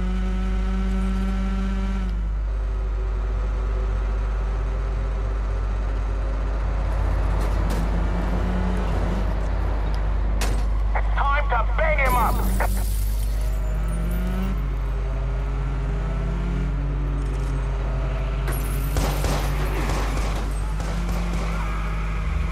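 A car engine revs loudly and steadily.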